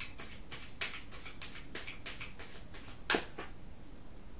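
Playing cards are shuffled with quick, soft slaps.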